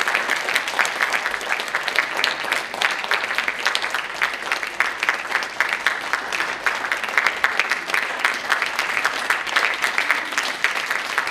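An audience applauds steadily in a hall.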